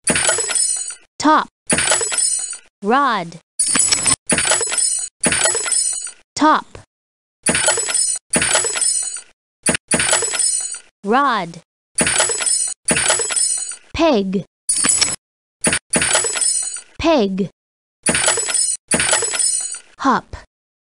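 Bright, tinkling chime effects ring out in short bursts, again and again.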